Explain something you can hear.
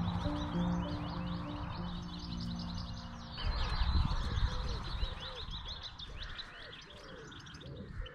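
Small birds chirp and sing busily nearby.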